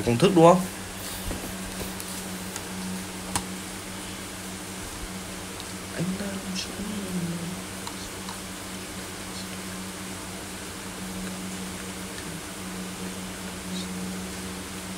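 Casino chips clink softly as bets are placed.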